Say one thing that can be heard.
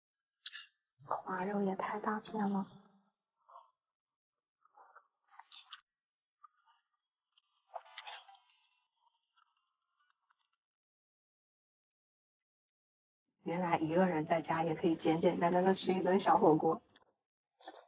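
A young woman talks cheerfully and close up.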